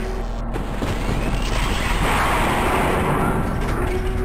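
A monster snarls and growls close by.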